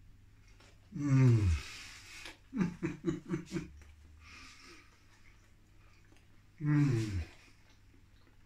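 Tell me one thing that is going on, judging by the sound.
A man hums approvingly.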